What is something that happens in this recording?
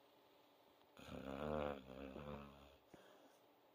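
A dog groans softly in its sleep.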